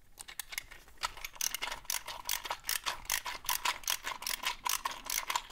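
A ratcheting screwdriver clicks rapidly as it turns a metal fitting.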